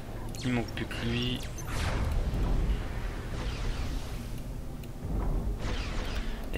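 Energy weapons zap in a battle.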